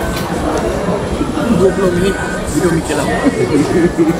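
A young man talks casually close by.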